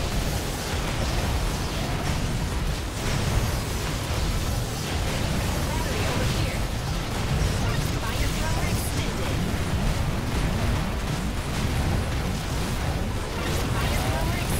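Rapid electronic gunfire and explosions blast steadily from a video game.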